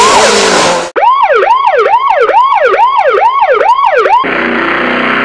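A police siren wails in a fast, rising and falling pattern.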